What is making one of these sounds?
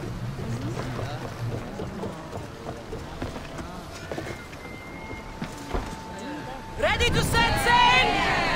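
Footsteps thud on a wooden deck.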